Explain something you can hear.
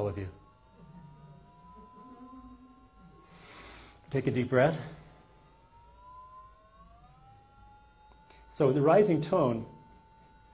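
A small electronic device gives off a steady tone that slowly rises in pitch.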